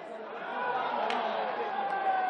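A referee blows a short whistle.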